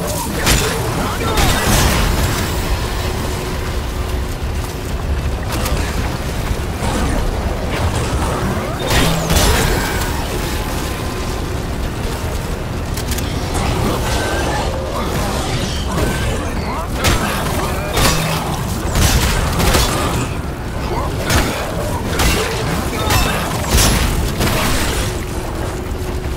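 A creature shrieks and snarls.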